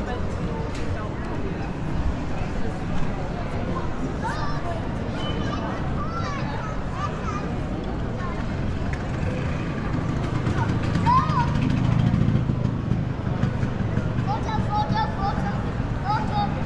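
Footsteps walk across cobblestones.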